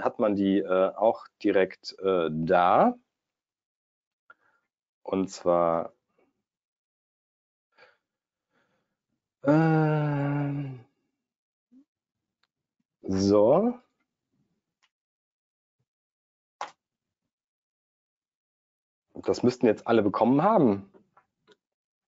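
A young man speaks calmly into a close microphone, with pauses.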